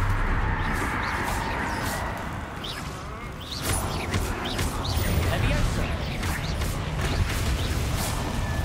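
Magic spells crackle and zap in quick bursts.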